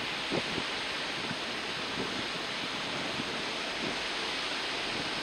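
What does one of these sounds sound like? Waves break and wash in steadily outdoors.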